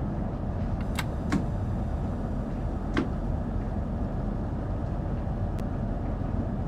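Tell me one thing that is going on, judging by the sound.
Train wheels clack now and then over rail joints.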